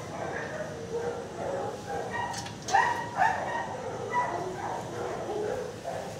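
A metal cage door rattles and clanks open.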